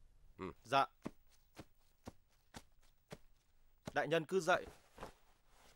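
A man speaks loudly and sternly, close by.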